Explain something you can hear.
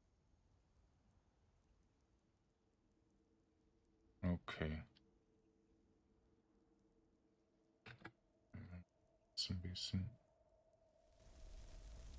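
A magic spell hums softly and steadily.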